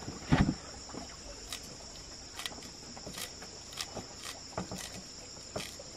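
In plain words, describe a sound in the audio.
A knife chops leaves with soft snips.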